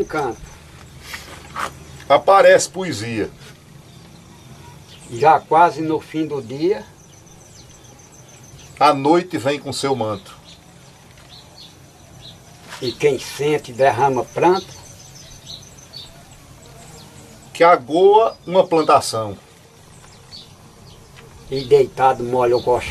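A man talks calmly nearby in bursts with pauses between.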